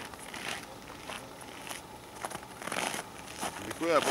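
Footsteps crunch on packed snow.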